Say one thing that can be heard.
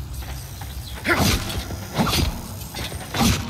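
A blade swings and strikes with sharp whooshes and thuds.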